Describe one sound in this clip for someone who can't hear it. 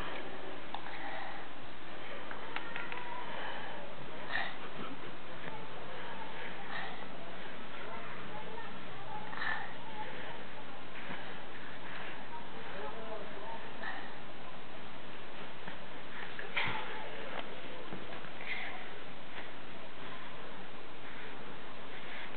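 A baby coos and babbles softly nearby.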